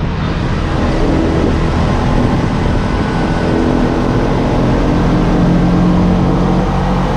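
A small motor engine rattles and drones loudly up close.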